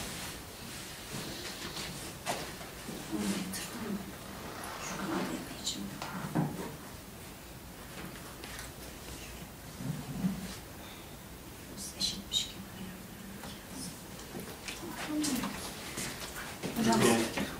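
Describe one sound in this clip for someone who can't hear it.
Women talk softly nearby.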